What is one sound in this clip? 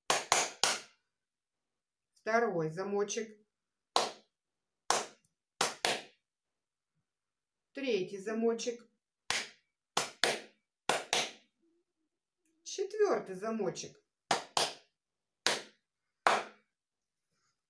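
A woman claps her hands in a rhythm.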